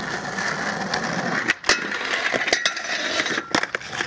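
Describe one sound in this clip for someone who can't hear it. A skateboard clacks against a wooden ledge.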